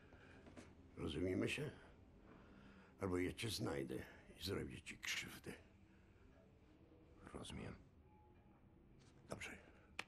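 An elderly man speaks in a low, menacing voice close by.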